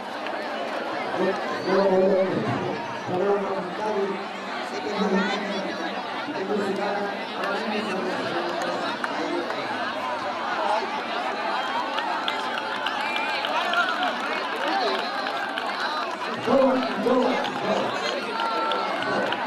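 A crowd of children and adults chatters all around, outdoors.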